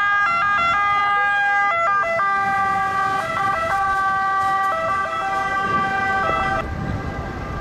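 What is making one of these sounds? An emergency vehicle's siren wails loudly nearby, switching between tones.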